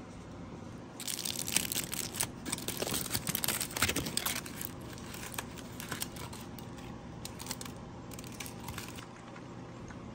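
Aluminium foil crinkles and rustles as it is unwrapped by hand.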